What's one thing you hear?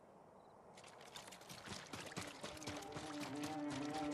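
Footsteps run along a path.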